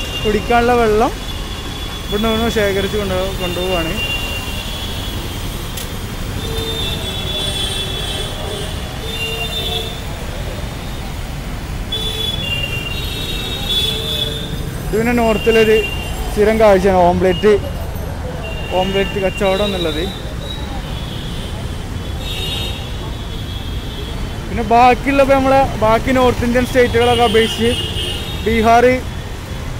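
Traffic rumbles steadily on a busy street.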